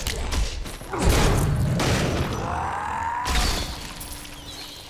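Weapons clash and magic bursts crackle in a fight.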